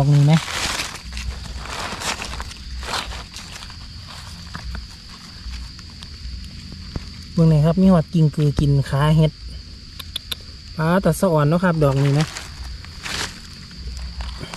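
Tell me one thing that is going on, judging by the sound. Dry leaves rustle and crackle close by.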